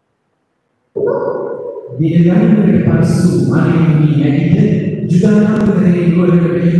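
A man chants through a loudspeaker in an echoing hall.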